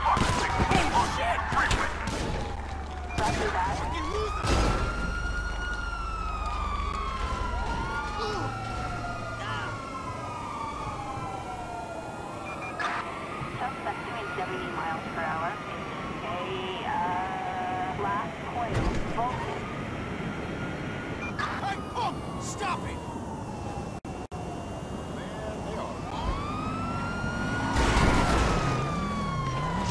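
A police siren wails up and down.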